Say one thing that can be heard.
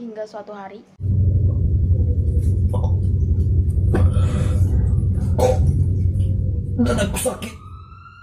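A teenage boy gasps and groans in pain close to a microphone.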